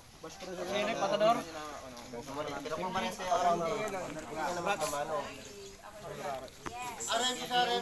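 Several men talk and call out close by, outdoors.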